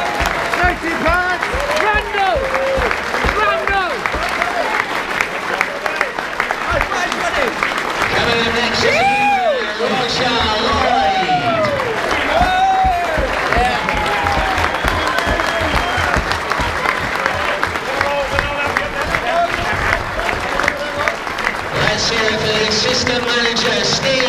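A large crowd claps.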